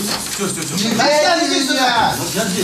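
A man cries out loudly in distress.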